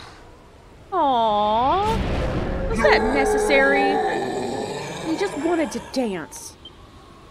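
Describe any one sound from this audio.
A large creature roars with a long, wavering howl.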